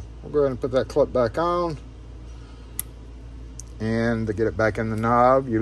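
Small metal parts click as a lock cylinder is handled.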